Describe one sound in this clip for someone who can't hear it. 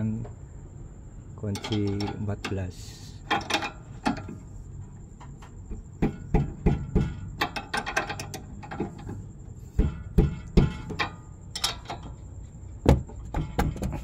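A wrench clicks and scrapes against a metal nut.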